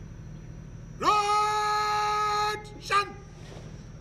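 A man shouts a long, drawn-out parade command.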